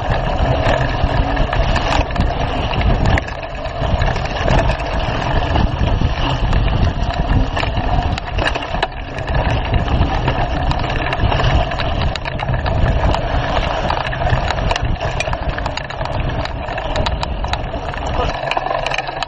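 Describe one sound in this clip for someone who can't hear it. Bicycle tyres crunch and rumble over a bumpy dirt trail.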